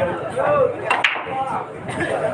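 Billiard balls clack together.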